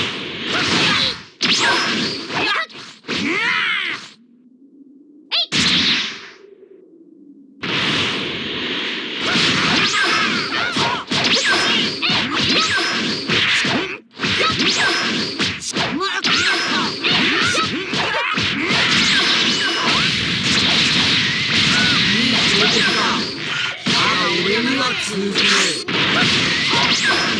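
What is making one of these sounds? Punches and kicks thud in quick bursts.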